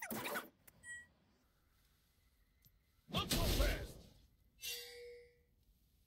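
Game spell effects whoosh and burst in short blasts.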